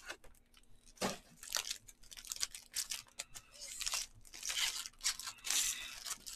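Foil card wrappers crinkle and tear open.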